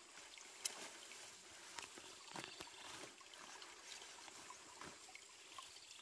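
A plastic sheet crinkles and rustles.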